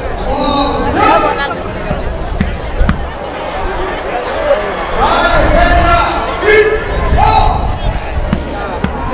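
Nearby spectators talk and call out in a large outdoor crowd.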